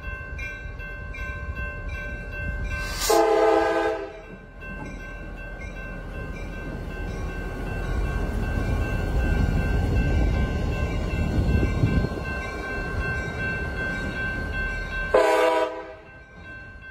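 A diesel locomotive rumbles and roars past close by.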